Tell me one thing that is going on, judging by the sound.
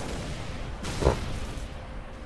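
A gunshot cracks and booms once.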